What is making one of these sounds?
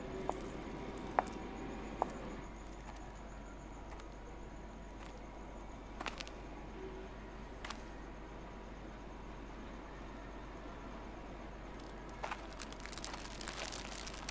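High heels click on hard ground.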